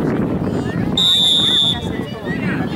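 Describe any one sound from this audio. A referee's whistle blows a sharp, steady blast.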